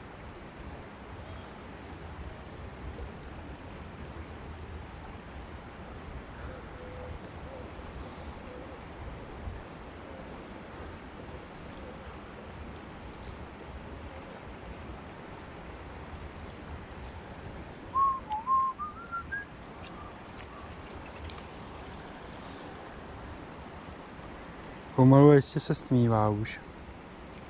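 A river flows gently outdoors.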